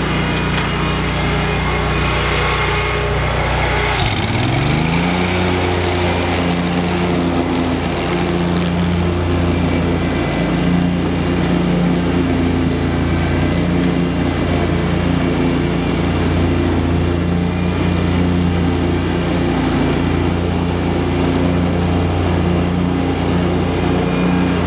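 A ride-on mower's engine drones steadily.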